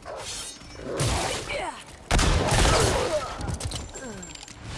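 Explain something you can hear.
A dog snarls and growls.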